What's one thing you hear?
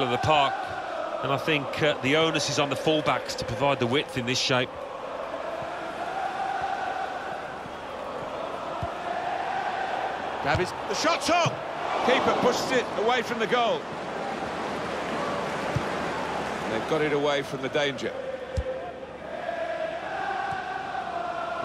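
A large crowd murmurs and cheers steadily in a big open stadium.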